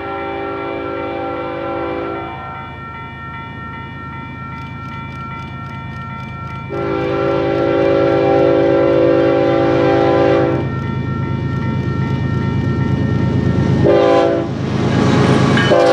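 A train horn blows loud, long blasts, drawing nearer.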